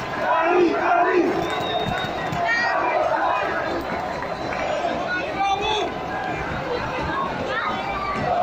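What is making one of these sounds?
Fireworks bang and crackle nearby.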